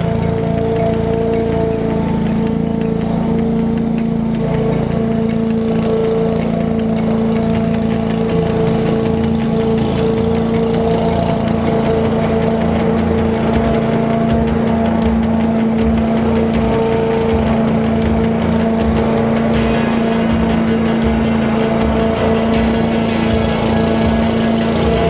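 A lawn mower engine drones steadily close by.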